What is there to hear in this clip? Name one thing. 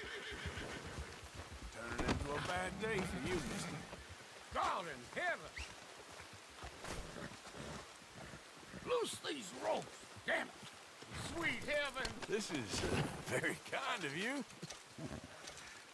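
Men grunt and groan while fighting.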